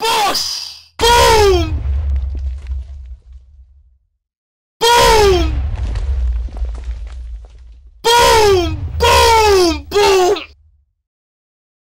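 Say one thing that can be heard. Explosions boom and rumble in bursts.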